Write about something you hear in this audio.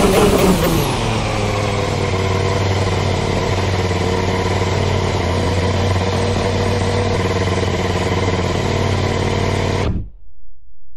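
A racing car engine idles with a steady low hum, then cuts off.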